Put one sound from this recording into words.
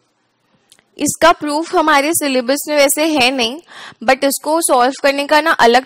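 A young woman speaks calmly and clearly into a headset microphone.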